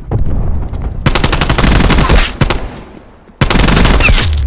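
An automatic rifle fires rapid bursts of shots up close.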